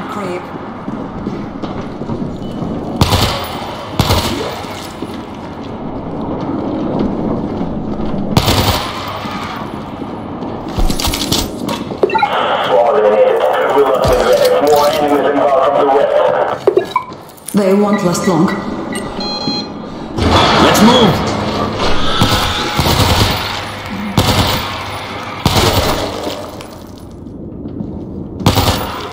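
Gunshots ring out in short bursts.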